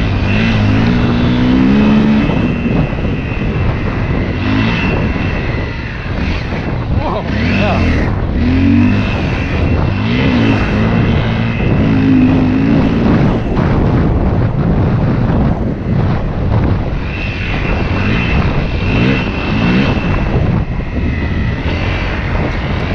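Tyres crunch over a sandy dirt track.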